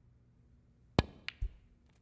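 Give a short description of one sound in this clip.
A cue sharply strikes a snooker ball.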